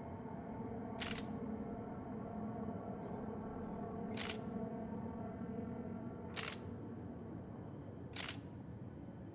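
Sharp electronic clicks sound now and then.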